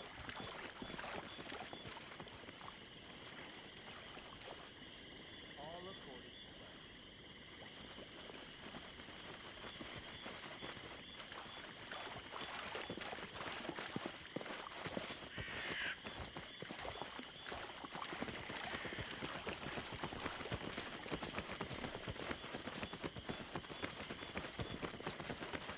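Footsteps crunch on the ground as a small group walks.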